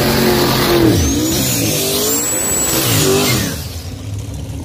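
Tyres screech while spinning on the pavement.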